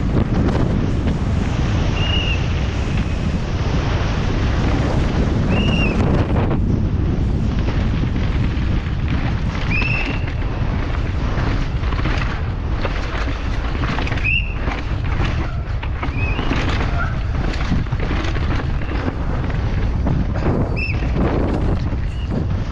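Wind rushes loudly past a fast-moving mountain bike.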